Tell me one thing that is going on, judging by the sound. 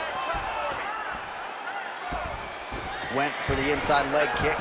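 Blows and kicks land with dull thuds.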